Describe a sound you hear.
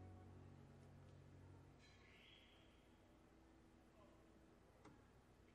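A cello plays a sustained note.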